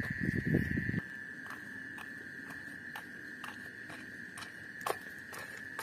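A child's footsteps patter on a dirt path, coming closer.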